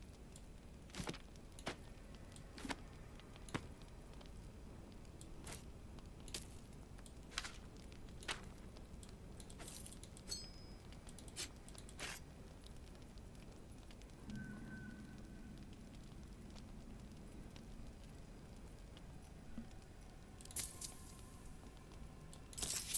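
Short game interface clicks and clinks sound again and again.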